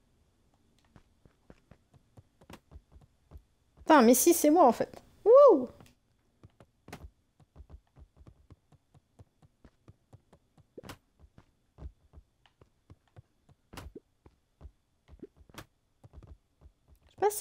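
Soft footsteps patter across a wooden floor.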